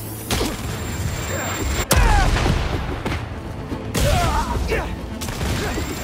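Punches and kicks thud in a brawl.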